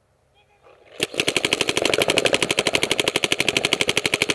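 A paintball gun fires a fast, steady burst of shots close by.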